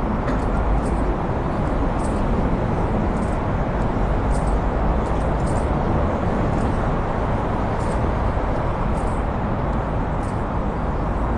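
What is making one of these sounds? Wind rumbles loudly against the microphone outdoors.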